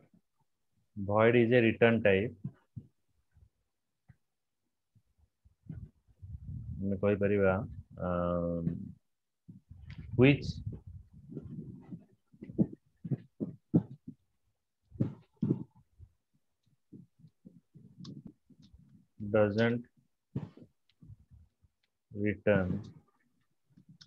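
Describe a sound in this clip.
A man speaks calmly and steadily, close to a microphone, with pauses.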